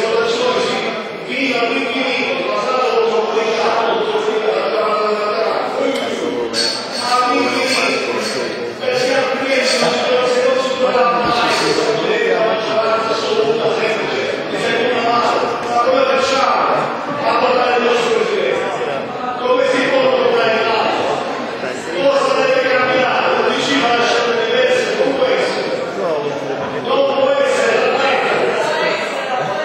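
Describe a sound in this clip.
An elderly man speaks loudly and with animation in a large echoing hall.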